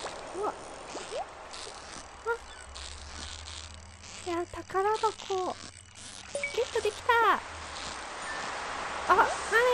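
A fishing reel whirs as a line is reeled in.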